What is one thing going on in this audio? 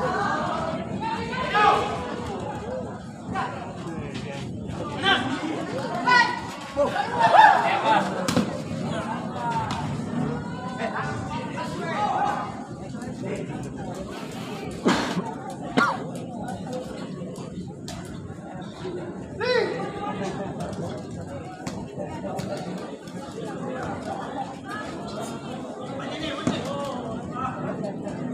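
A crowd of spectators chatters and shouts in a large, echoing hall.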